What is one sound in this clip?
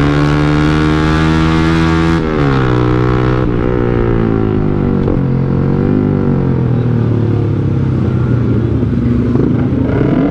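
A motorcycle engine hums steadily up close, its pitch shifting as the rider changes speed.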